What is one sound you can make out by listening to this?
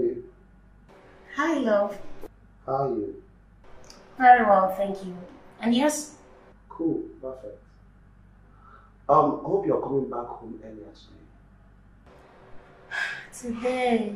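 A woman talks on a phone, her voice close.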